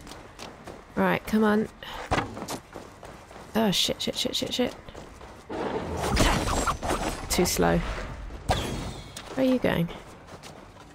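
A large beast grunts and snarls.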